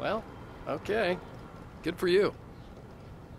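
A young woman speaks brightly and cheerfully.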